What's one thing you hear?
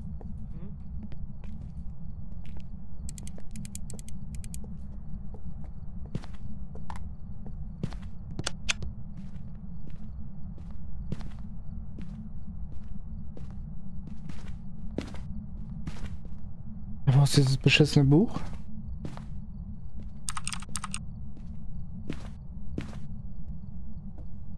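Footsteps thud slowly and evenly across a wooden floor.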